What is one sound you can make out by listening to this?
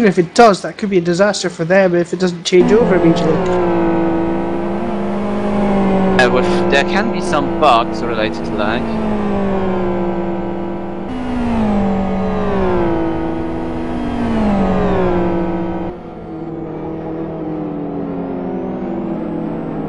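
Racing car engines roar and rise in pitch as the cars speed past.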